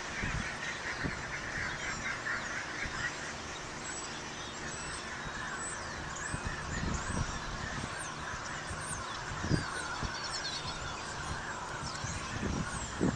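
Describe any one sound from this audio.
A wind turbine whirs steadily as its blades spin.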